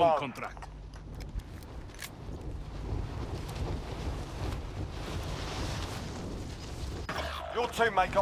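Wind rushes loudly past during a fast fall.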